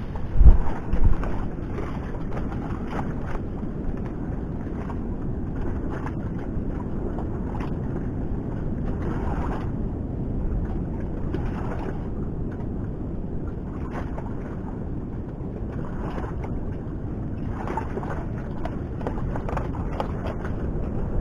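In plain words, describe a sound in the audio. Water laps against the side of a boat.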